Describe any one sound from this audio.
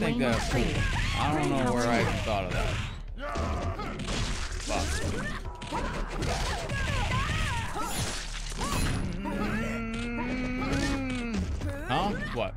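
Punches and kicks thud in a fighting game.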